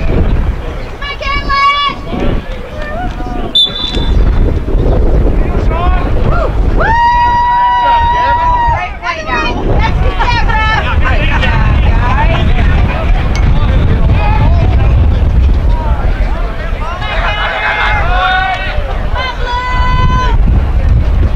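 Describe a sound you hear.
A referee's whistle blows sharply several times.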